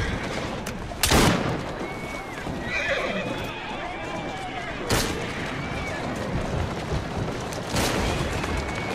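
Gunshots crack.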